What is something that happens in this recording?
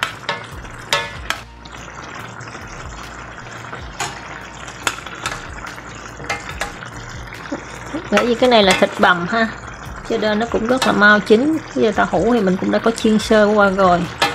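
Sauce bubbles and simmers in a pan.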